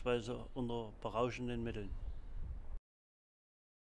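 An elderly man exclaims loudly nearby.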